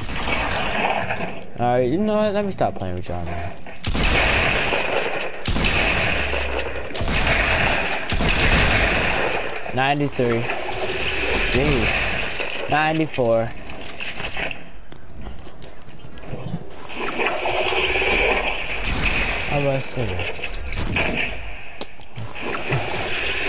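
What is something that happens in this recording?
Video game wood building pieces clatter into place.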